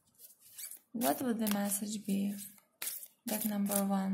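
Playing cards riffle and flutter as they are shuffled.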